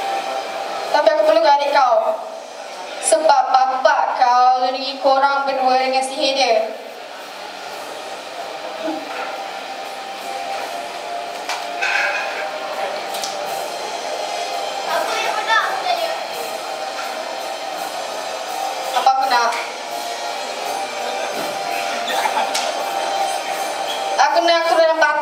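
A young woman sings through a microphone and loudspeakers in a large echoing hall.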